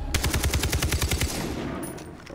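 Rapid gunfire bursts out close by.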